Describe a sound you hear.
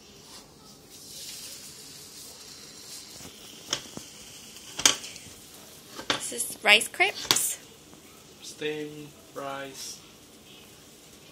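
Batter sizzles in a hot pan.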